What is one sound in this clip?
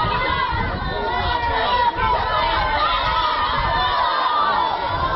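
A crowd of men and women shouts and chants loudly nearby.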